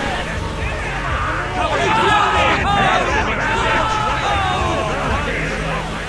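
Flame jets roar in short bursts.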